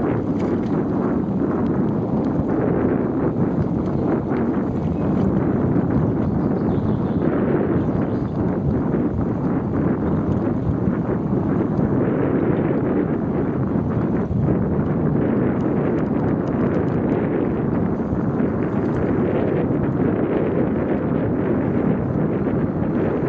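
Wind rumbles loudly as the ride moves along outdoors.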